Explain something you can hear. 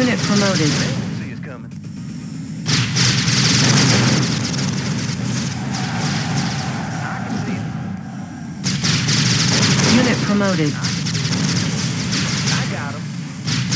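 A laser weapon fires with a buzzing zap.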